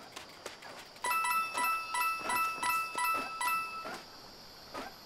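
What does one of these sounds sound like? Bright chiming jingles ring out in rapid succession.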